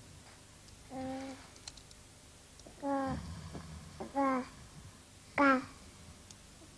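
A baby babbles and whimpers close by.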